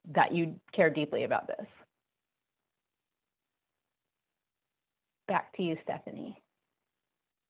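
A middle-aged woman speaks calmly through a headset microphone over an online call.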